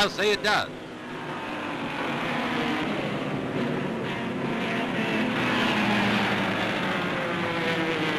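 Racing car engines roar past at speed.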